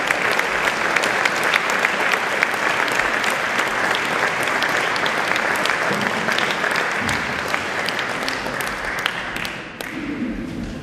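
An audience applauds loudly in a large echoing hall, then the clapping stops.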